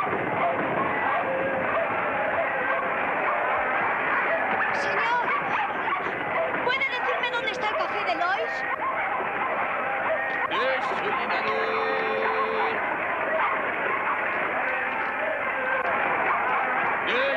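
A busy crowd chatters and bustles throughout.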